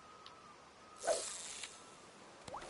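A fishing line whizzes out as it is cast.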